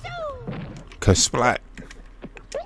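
A cartoon creature gives a short, squeaky yelp as it jumps.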